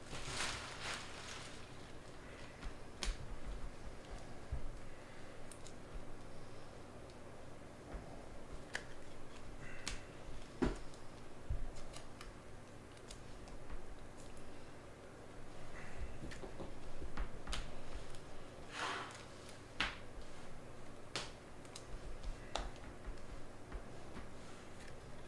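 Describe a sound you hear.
Trading cards slide and flick against each other in someone's hands.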